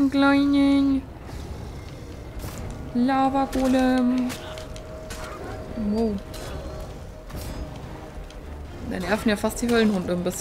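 A sword strikes a fiery creature with sharp hits.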